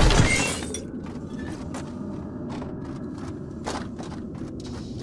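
Footsteps patter steadily on stone.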